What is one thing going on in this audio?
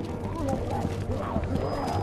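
Footsteps creak on wooden stairs.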